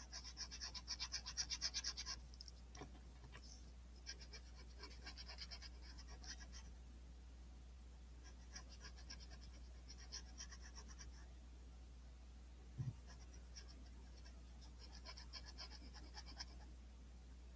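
A felt-tip marker scratches softly across paper in quick, rapid strokes.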